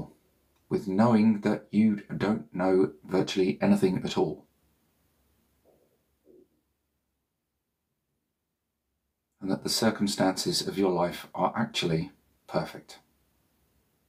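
A man speaks slowly and calmly, close to the microphone, with long pauses.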